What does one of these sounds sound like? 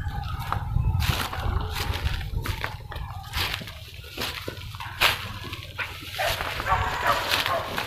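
A person steps along a fallen dead log.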